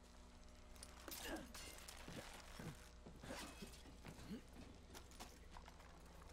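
A grappling rope whirs and clanks against metal.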